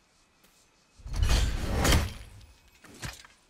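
An axe strikes stone with a heavy thud.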